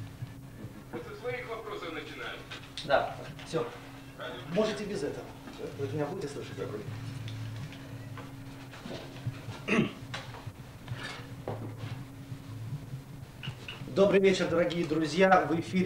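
A middle-aged man talks into a microphone with animation.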